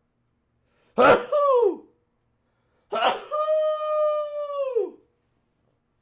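A young man shouts and yells in long, drawn-out cries.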